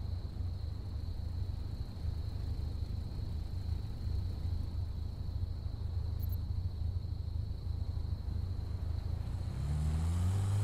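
A car engine idles with a low, throbbing rumble.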